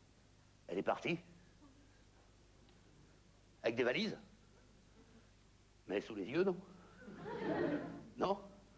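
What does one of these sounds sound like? A man speaks loudly in short, animated bursts.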